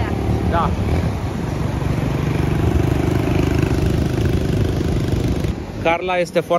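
A dirt bike engine buzzes along.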